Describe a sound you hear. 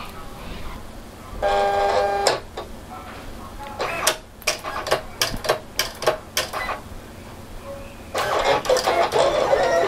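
A cutting machine whirs and clicks.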